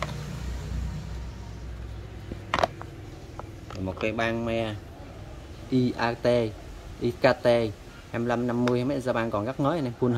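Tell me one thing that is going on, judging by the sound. A plastic case clicks and rattles as it is handled.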